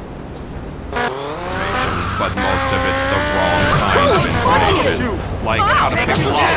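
A motorbike engine starts and revs loudly.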